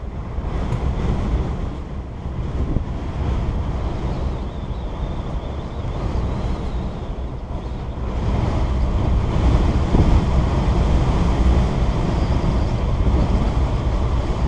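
Strong wind gusts roar outdoors, growing louder partway through.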